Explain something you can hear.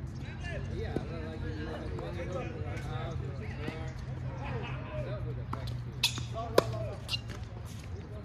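Tennis balls are struck with rackets, with sharp pops.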